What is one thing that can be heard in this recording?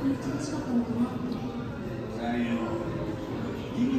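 A crowd of people chatter nearby in a large echoing hall.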